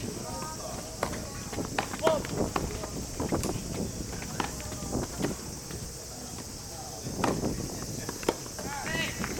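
Tennis rackets strike a ball back and forth outdoors.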